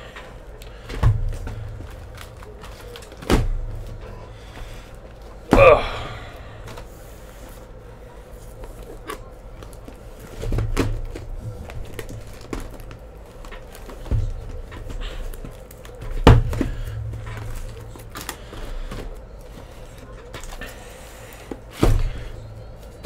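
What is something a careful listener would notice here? Cardboard boxes knock and thump as hands shift them.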